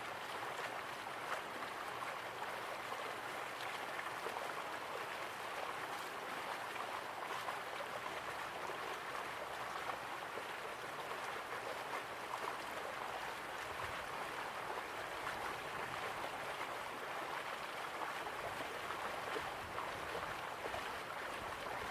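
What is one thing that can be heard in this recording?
Water roars and rushes steadily.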